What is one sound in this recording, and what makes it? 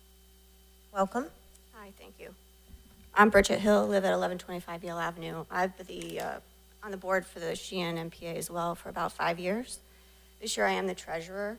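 A woman speaks calmly into a microphone, heard through a loudspeaker in a large room.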